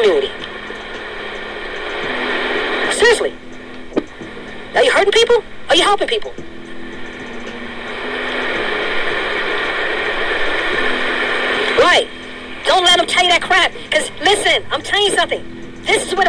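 A man speaks with animation, close to a phone's microphone.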